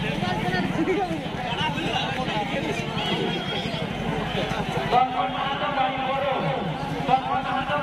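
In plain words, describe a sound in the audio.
A motorbike engine idles nearby.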